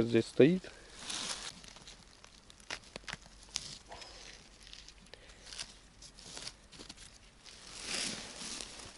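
Dry leaves and twigs rustle and crackle close by.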